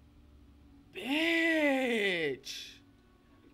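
A young woman exclaims loudly.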